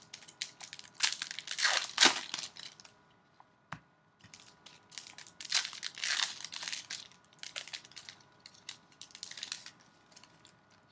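Hands crinkle and rustle plastic wrappers.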